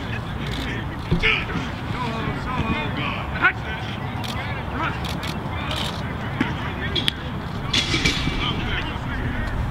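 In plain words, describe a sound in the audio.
Young men shout and call out to each other across an open field outdoors.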